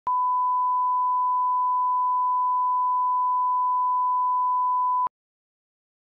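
A steady, high-pitched test tone sounds, then stops abruptly.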